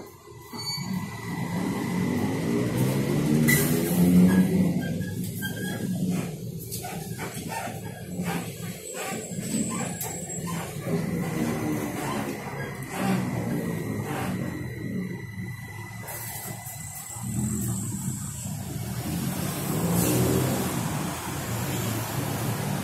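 A bus rumbles and rattles over the road.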